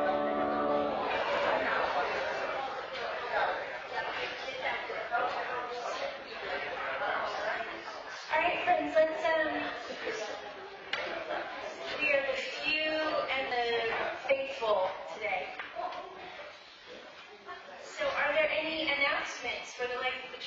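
Men and women chat in an echoing hall.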